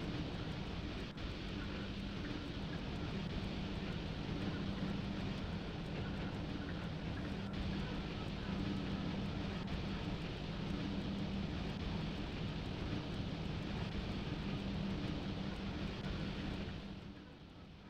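An electric locomotive's motors hum steadily.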